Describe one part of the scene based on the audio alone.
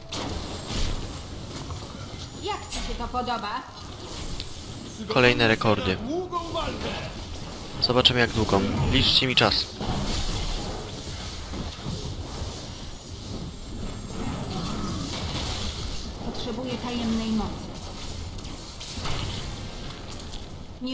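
Magic blasts crackle and boom in a fantasy battle.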